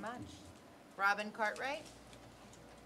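A woman speaks briefly through a microphone.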